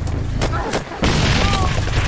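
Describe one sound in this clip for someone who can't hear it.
A rifle fires loud shots.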